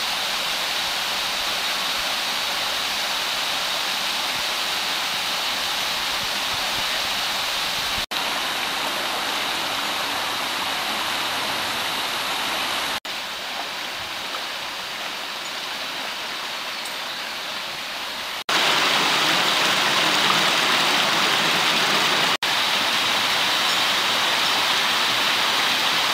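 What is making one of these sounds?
Water rushes and splashes steadily over rocks.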